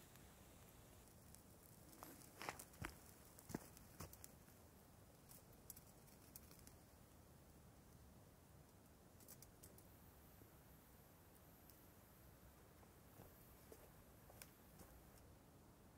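Meat sizzles on a grill over a fire.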